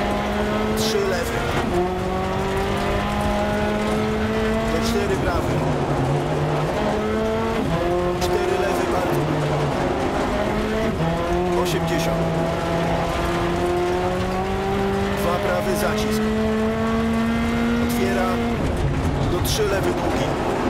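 Stones clatter against the car's underbody.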